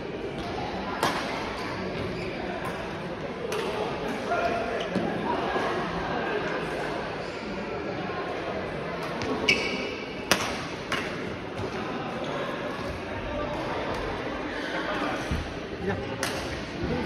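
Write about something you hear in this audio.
Shuttlecocks are hit with sharp racket pops in a large echoing hall.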